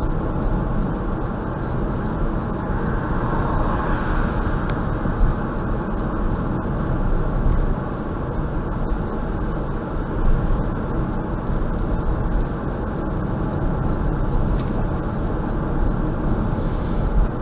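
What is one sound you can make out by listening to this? Tyres roll steadily on a smooth road.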